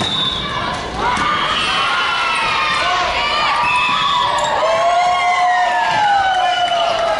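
Young women shout and call out to each other across the court.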